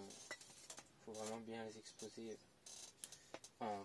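A trowel scrapes and scoops soil.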